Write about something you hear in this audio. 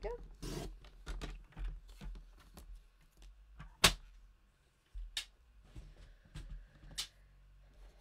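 A paper trimmer clicks sharply.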